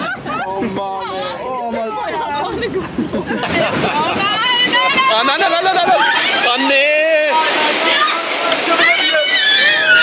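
Young men laugh and talk excitedly close by.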